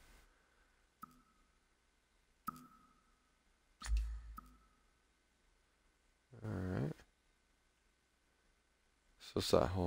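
Short menu blips sound as selections change.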